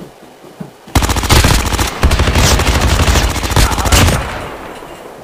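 A heavy machine gun fires in a long, loud, rapid burst.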